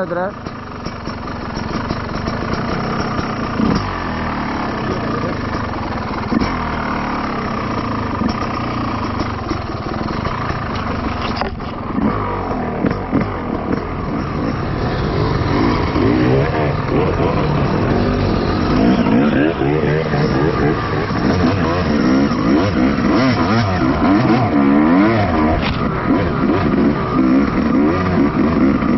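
A dirt bike engine runs close by, revving up and down.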